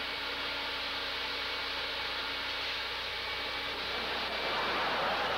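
A vacuum cleaner hums steadily as it sucks over carpet.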